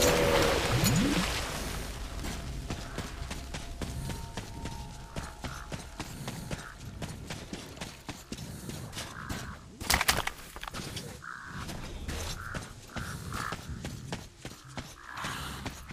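Footsteps crunch through dry grass and brush at a steady walking pace.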